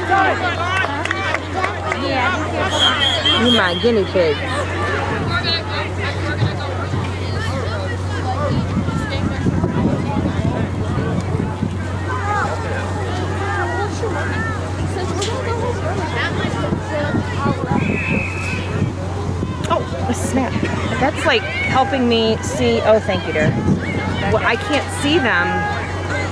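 A crowd of young people chatter and call out outdoors.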